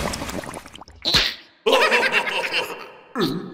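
Two high cartoonish voices laugh loudly.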